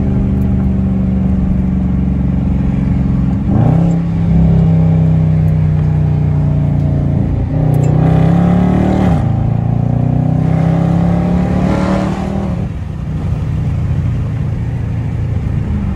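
A car engine revs hard and shifts up through the gears.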